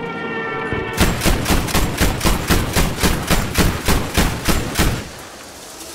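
An anti-aircraft gun fires a rapid burst of heavy shots.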